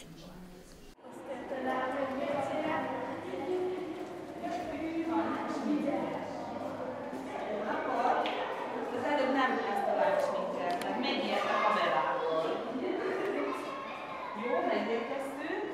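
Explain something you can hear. Children chatter in an echoing corridor.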